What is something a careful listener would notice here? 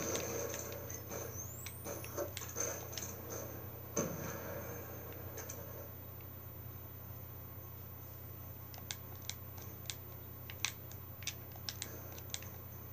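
Gunshots from a video game crack through a television speaker.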